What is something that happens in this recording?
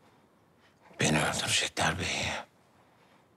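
A middle-aged man speaks in a low, weary voice up close.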